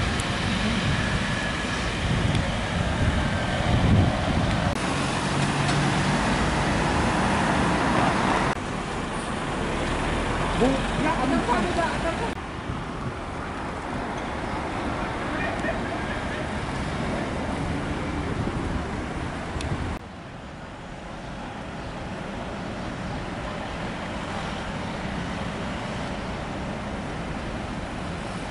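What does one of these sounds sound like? A heavy truck's diesel engine rumbles as it drives slowly past.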